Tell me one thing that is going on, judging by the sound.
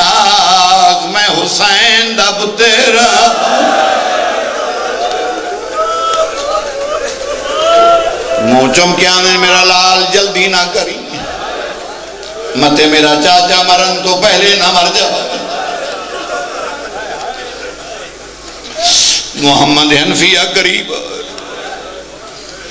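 A middle-aged man speaks passionately into a microphone, his voice ringing through loudspeakers and at times rising to a chanting shout.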